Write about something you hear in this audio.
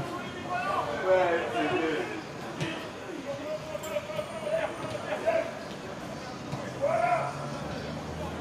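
Men call out to each other across an open outdoor field.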